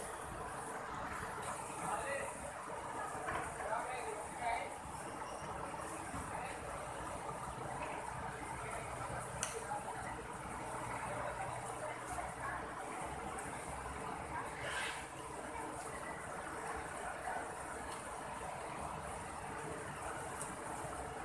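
A river rushes and splashes over rocks.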